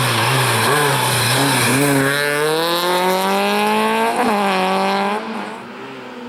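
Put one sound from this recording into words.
A rally car engine roars close by, revving hard and rising in pitch.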